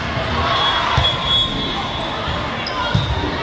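A volleyball is struck with a sharp thump.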